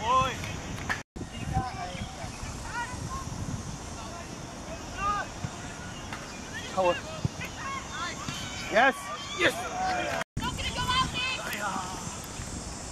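Young players shout across an open field.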